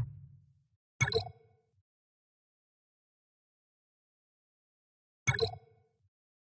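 Menu buttons click twice.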